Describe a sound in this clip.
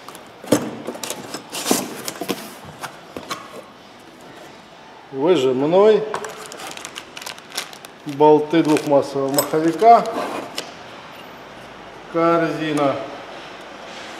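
Cardboard rustles and scrapes as a box is handled.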